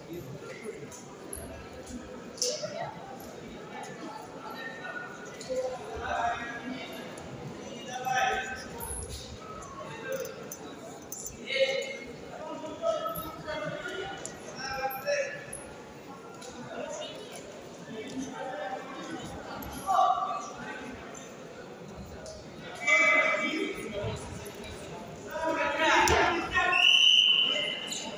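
Spectators talk and shout in a large echoing hall.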